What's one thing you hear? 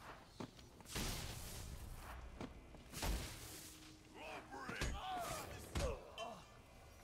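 Heavy punches and kicks land with loud thuds.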